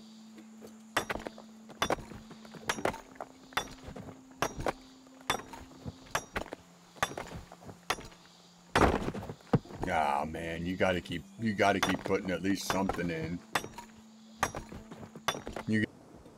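A pickaxe strikes rock with repeated sharp knocks.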